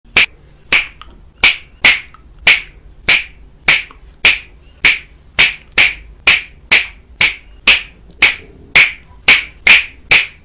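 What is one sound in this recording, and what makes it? A man snaps his fingers close by in a quick, steady rhythm.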